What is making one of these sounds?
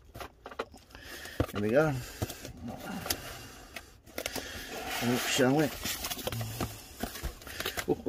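Cardboard rustles and crinkles as a box is handled.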